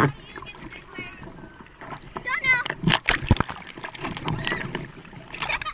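Water splashes and laps close by.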